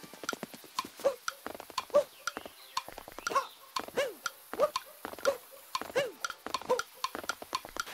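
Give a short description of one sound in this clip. A short springy boing sounds with each jump in a video game.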